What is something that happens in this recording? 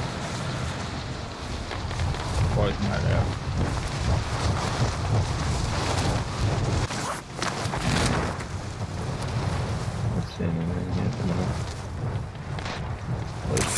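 Wind rushes loudly past during a high-speed fall through the air.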